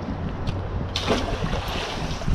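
A small lure splashes into water close by.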